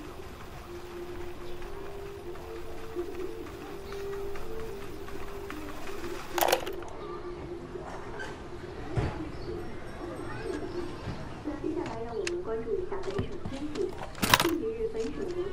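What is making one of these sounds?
A melody plays softly through a small radio loudspeaker.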